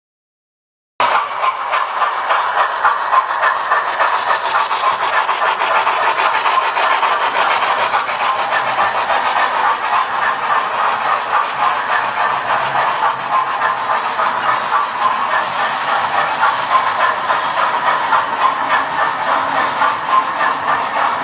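Model trains rattle and click steadily along their tracks.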